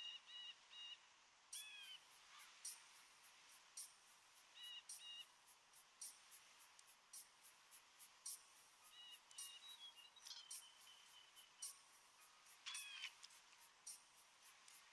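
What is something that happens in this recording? Waves wash softly and steadily.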